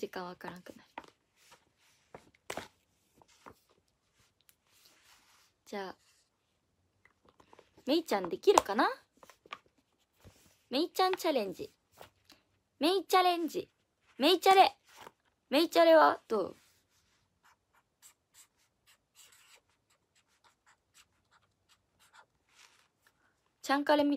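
A young woman speaks softly and calmly close to a microphone.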